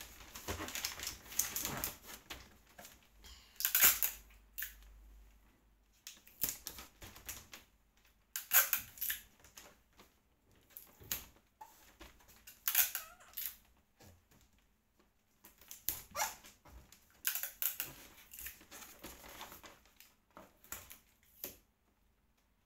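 Wrapping paper crinkles and rustles as hands tear at it.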